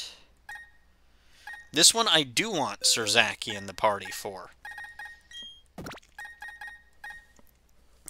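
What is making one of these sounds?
Short electronic blips sound as a game menu is scrolled.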